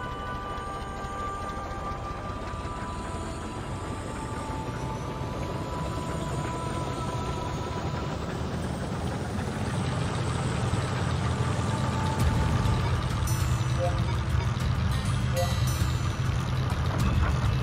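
A tank engine rumbles steadily as the tank rolls over sand.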